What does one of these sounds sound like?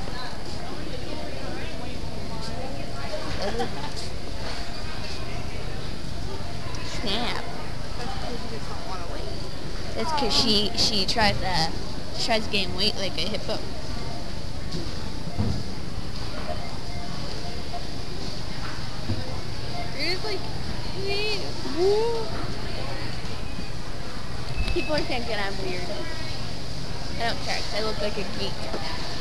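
Voices murmur in a large echoing store.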